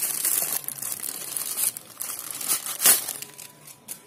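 A plastic bag crinkles as hands open it.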